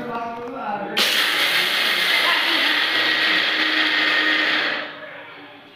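An electric grinder whirs loudly.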